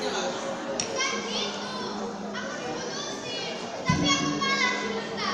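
Young girls sing together through loudspeakers in a large echoing hall.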